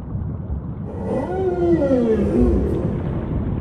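Killer whales call underwater with high, gliding whistles.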